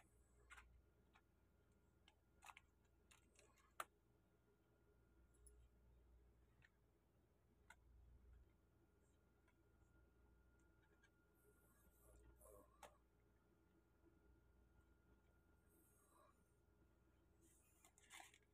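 Hands rustle and crinkle crisp flatbreads on paper.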